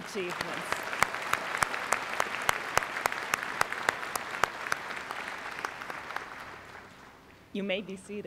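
An audience applauds in a large hall and the applause fades away.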